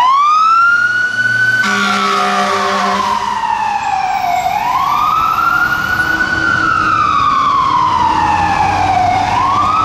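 A fire engine's siren wails up and down loudly as it passes.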